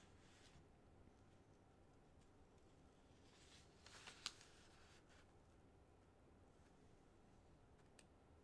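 Large wings flap with soft whooshes.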